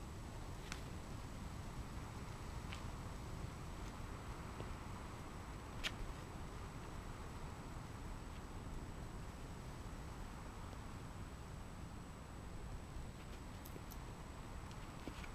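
Shoes scrape and tap against rock.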